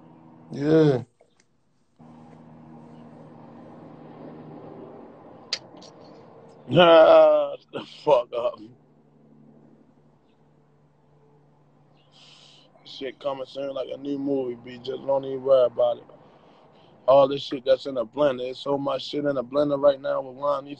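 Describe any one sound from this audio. A young man talks casually and close up, heard through a phone's live stream.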